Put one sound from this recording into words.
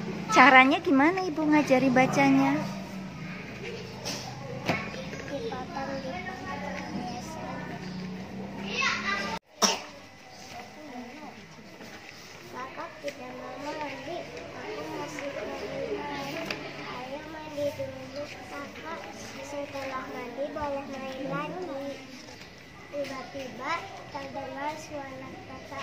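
A young girl reads aloud slowly, close by.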